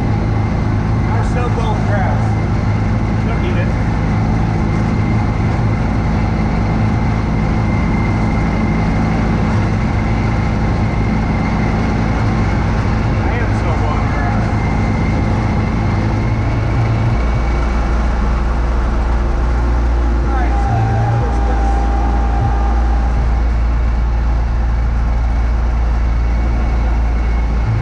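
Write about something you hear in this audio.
Snow sprays and hisses from a snow blower chute.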